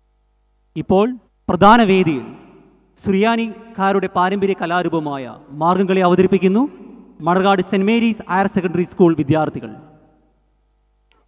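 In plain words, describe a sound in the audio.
A man speaks through a microphone over loudspeakers in a large hall.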